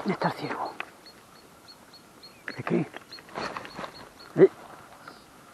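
Loose stones clatter and crunch under a dog's paws.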